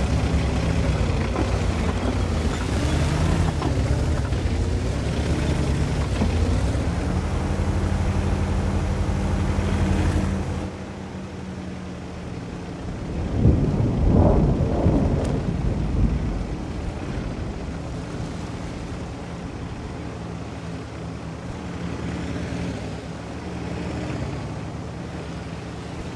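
A heavy tank's engine rumbles as the tank drives.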